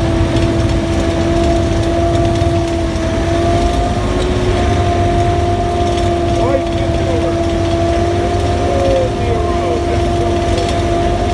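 An engine hums steadily.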